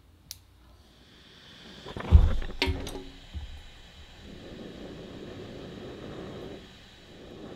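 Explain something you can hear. A gas torch roars with a steady hiss.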